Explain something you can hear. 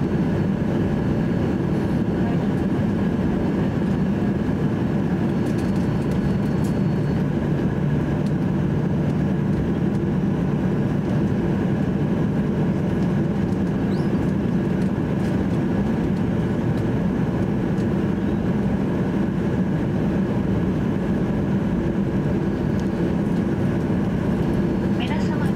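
An aircraft's engines hum and whine steadily while it taxis.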